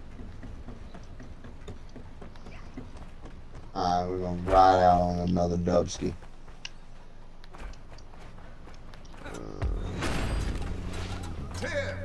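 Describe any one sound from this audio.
Light footsteps patter quickly on hard floors.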